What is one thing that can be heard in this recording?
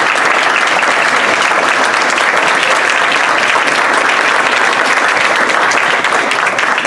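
A crowd of people cheers and shouts.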